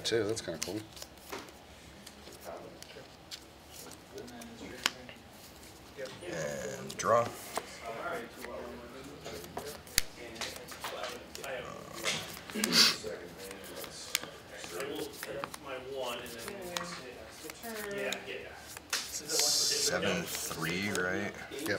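Playing cards rustle in a hand.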